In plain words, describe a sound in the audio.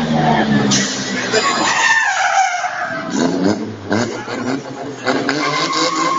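Tyres screech as a race car drifts.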